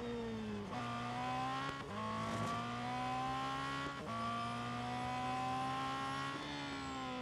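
A racing car engine revs hard, climbing in pitch through each gear and dropping sharply at every gear change.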